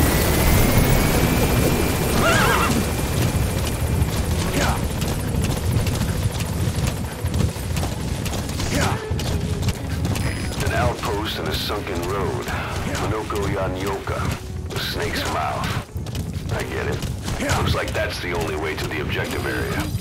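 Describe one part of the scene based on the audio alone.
A horse's hooves thud steadily on dry ground as it trots.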